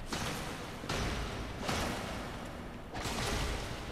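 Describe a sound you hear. Metal strikes metal with a sharp clang.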